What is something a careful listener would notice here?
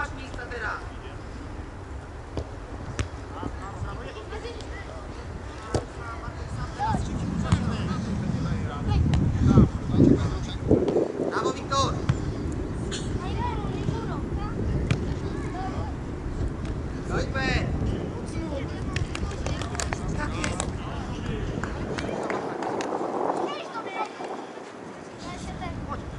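Children shout and call out across an open outdoor field.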